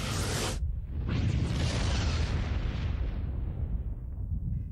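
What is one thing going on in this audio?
A deep rumbling blast booms and slowly fades.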